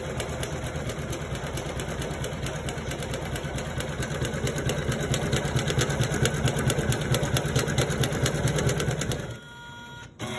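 An embroidery machine stitches with a fast, steady rattling hum.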